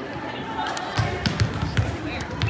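A volleyball thumps against a player's arms.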